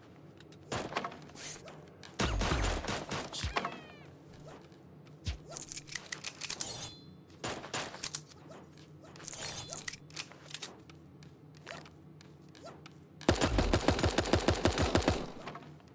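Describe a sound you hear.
Rapid gunshots crack in bursts in a video game.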